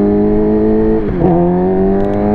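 A motorcycle engine's pitch drops briefly as it shifts gear.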